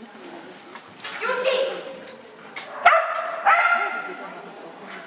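A woman calls out commands loudly in a large echoing hall.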